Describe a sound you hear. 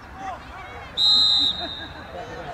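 A referee's whistle blows a sharp, steady blast.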